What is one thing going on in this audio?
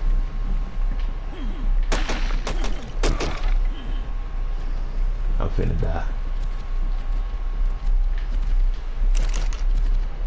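Short game interface clicks and blips sound as items are moved.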